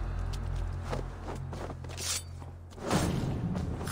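A blade strikes with a sharp hit.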